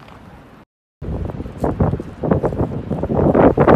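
Wind blows hard and gusts outdoors.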